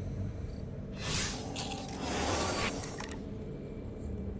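A soft electronic shimmer swells and fades.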